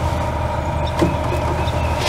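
A switch clicks sharply.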